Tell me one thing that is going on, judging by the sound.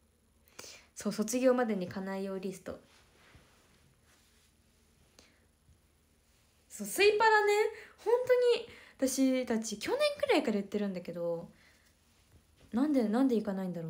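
A young woman speaks softly and close up, in short bursts.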